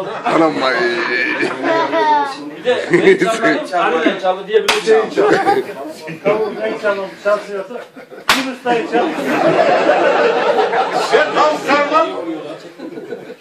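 A crowd of men laughs and cheers.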